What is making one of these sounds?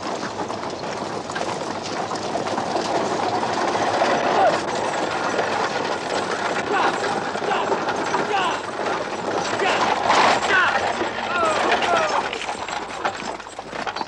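A horse-drawn carriage rattles along.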